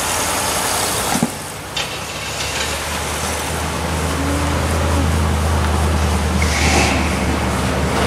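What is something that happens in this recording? A second car engine hums as it pulls away down the street.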